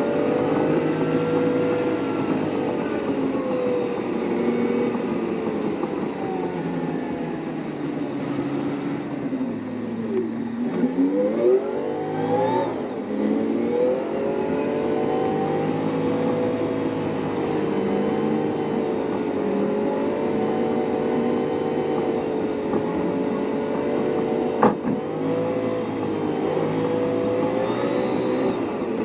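A bus engine drones steadily from inside the cabin, its pitch dipping and rising as the bus slows and speeds up.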